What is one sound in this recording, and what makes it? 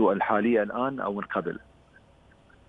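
A man speaks calmly over a phone line.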